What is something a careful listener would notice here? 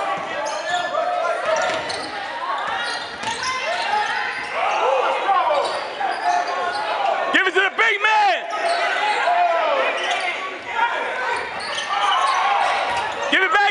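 Sneakers squeak sharply on a wooden court in an echoing gym.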